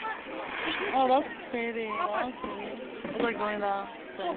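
Adults nearby talk excitedly.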